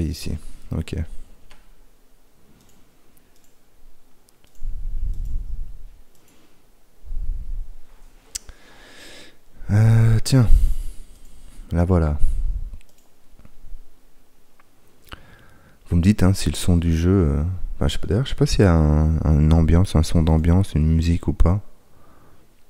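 A man talks into a close microphone, with animation.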